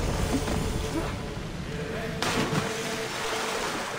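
A person dives and splashes into water.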